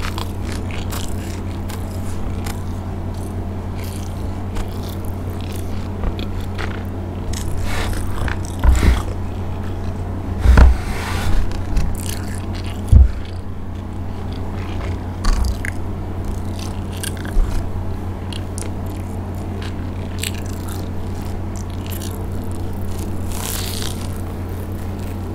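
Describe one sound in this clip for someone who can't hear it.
A young woman chews and crunches food close to a microphone.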